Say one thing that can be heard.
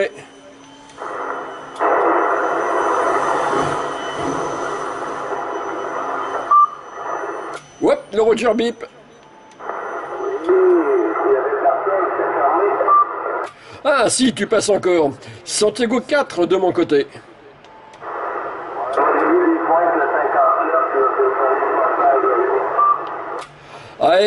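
A CB radio plays a weak, noisy transmission through its loudspeaker.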